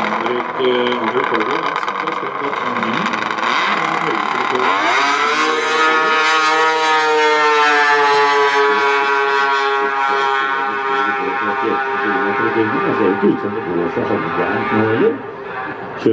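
A snowmobile engine roars loudly and revs up as the machine launches and speeds away.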